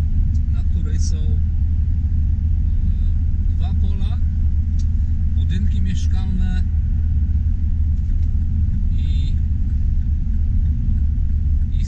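A car engine hums steadily inside a moving car.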